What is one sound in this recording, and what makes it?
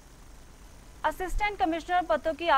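A woman reads out the news calmly and clearly through a microphone.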